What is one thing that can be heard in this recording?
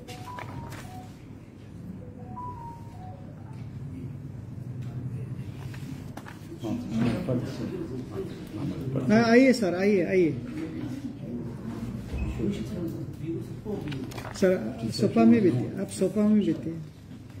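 Papers rustle.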